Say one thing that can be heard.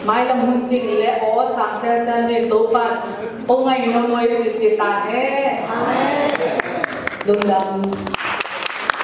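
A woman sings along into a microphone.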